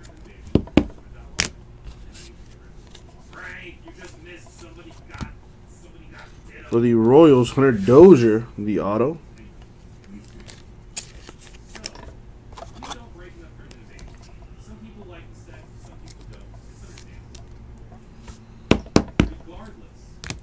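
Trading cards rustle and click as hands shuffle and handle them.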